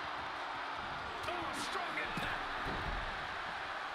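A body slams down hard onto a wrestling ring with a heavy thud.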